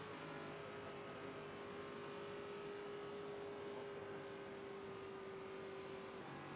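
A race car engine drones at a steady pitch.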